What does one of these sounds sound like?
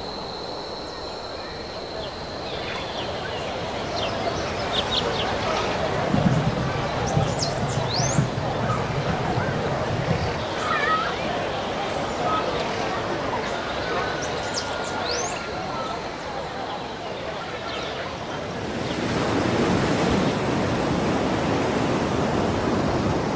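Wind rushes loudly past during a long glide through the air.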